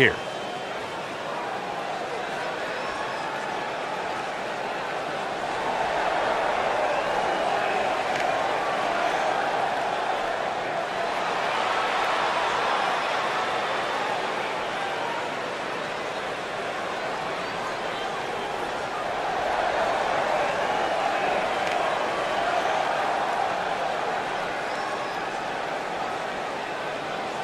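A large crowd cheers and roars in a big echoing arena, swelling louder at times.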